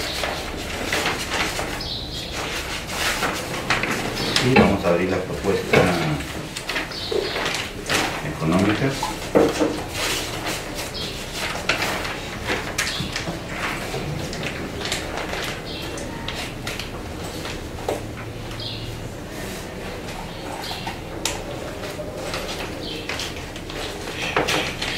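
A man speaks calmly to a small group nearby.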